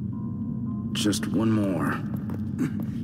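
A young man mutters briefly to himself.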